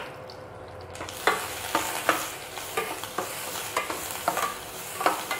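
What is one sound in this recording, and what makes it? Chopped vegetables sizzle in hot oil.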